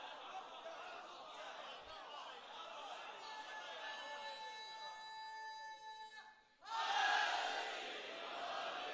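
A large crowd of men chants and calls out loudly.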